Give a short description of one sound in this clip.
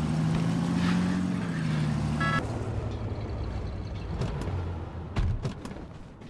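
A pickup truck engine rumbles as it drives and slows to a stop.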